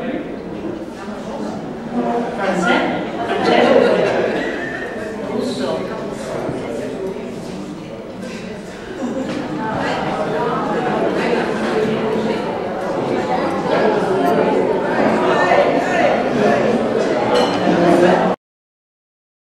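A crowd of diners chatters in the background.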